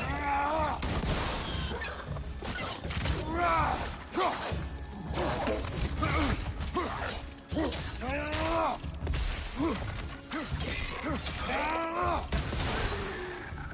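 Fiery blasts whoosh and burst with a roar.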